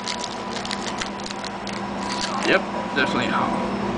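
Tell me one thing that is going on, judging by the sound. Playing cards rustle as they are shuffled.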